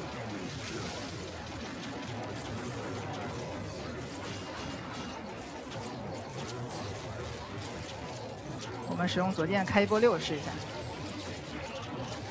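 Sword blades swish through the air in quick slashes.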